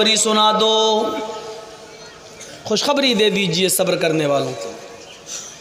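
A man preaches loudly with fervour through a microphone, his voice echoing in a large space.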